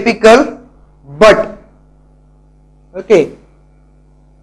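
A young man speaks in short bursts, close to a microphone.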